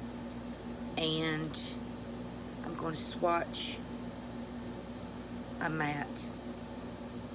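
A woman speaks calmly and softly in short bursts, close to a microphone.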